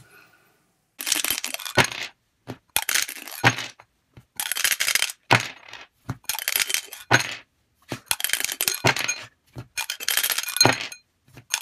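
A small object rattles in a shaking hand, again and again.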